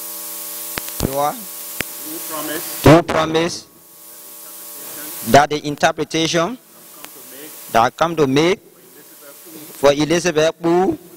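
A young man speaks into a microphone in short bursts, heard through a loudspeaker.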